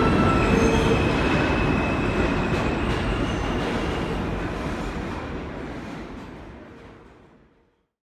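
A subway train rumbles and screeches in an echoing tunnel, slowly fading away.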